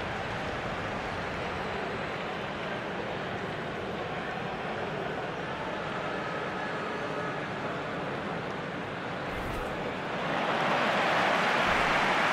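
A large stadium crowd roars steadily and swells louder near the end.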